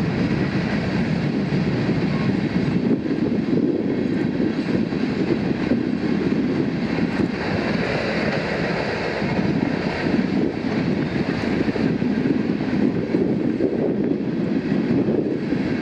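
A freight train rumbles steadily past with wheels clattering on the rails.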